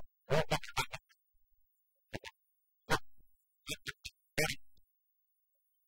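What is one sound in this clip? An older man speaks with animation, close by.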